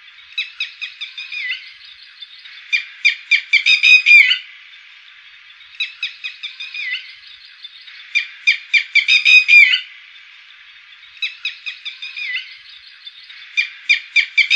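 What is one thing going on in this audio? A bird calls loudly in bursts of rapid, sharp, repeated notes.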